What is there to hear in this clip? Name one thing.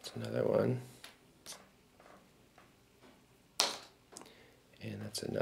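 Small game pieces tap and click on a board.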